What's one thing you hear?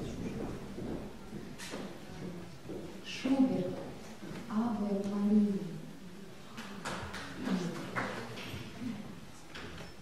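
A woman speaks to an audience in an echoing hall.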